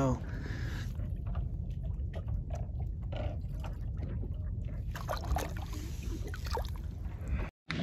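A fish splashes as it is released into calm sea water.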